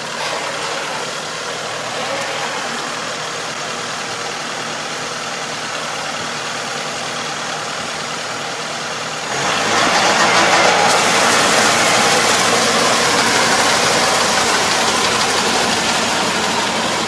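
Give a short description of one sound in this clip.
A rotary tiller churns through wet mud and water.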